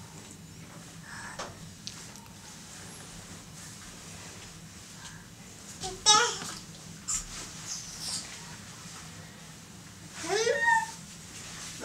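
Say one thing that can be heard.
Bedding rustles softly as a baby crawls.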